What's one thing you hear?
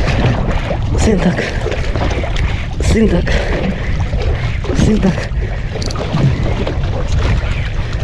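Waves slosh and splash against a boat's hull.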